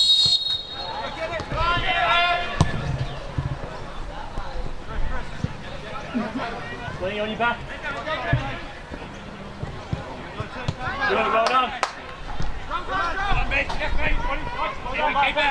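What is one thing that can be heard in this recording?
Young male players shout to each other across an open field.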